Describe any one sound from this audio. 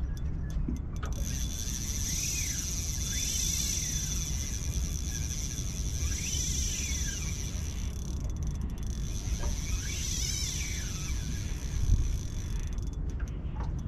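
A fishing reel whirs as line is drawn.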